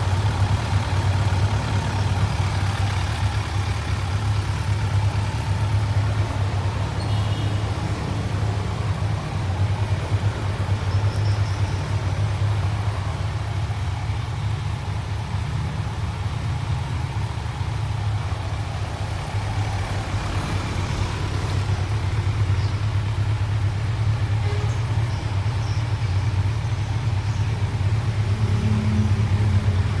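A motorcycle engine idles with a steady, low rumble close by.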